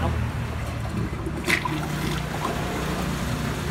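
Water swirls and gurgles as a toilet flushes.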